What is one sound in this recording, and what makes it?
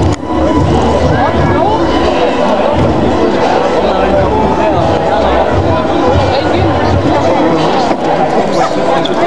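A large crowd of people chants and talks loudly outdoors.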